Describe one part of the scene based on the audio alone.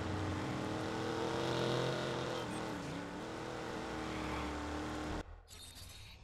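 A car engine hums steadily as a car drives along a street.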